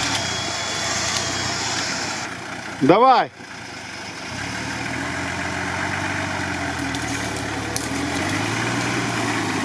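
Branches scrape and snap against an off-road vehicle.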